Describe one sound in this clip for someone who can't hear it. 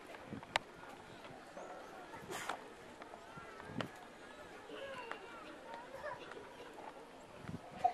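Several voices chatter faintly outdoors in the distance.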